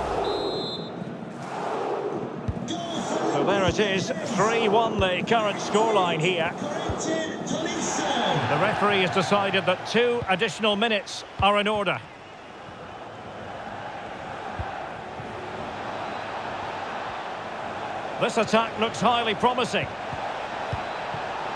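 A stadium crowd roars and murmurs steadily.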